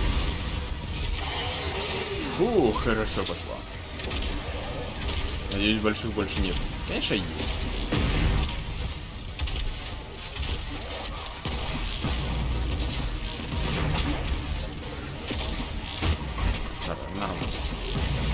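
Monsters growl and shriek.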